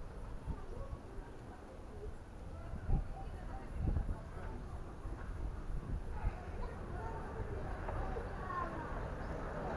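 Wind gusts outdoors, rumbling against the microphone.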